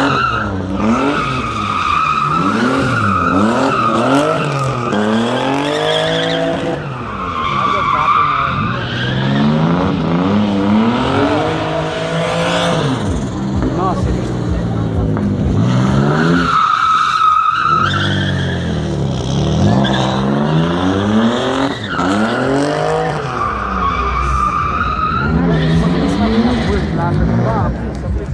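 Tyres screech loudly in long squeals.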